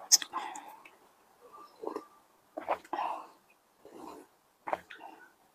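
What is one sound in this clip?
A young woman slurps soup from a bowl close to a microphone.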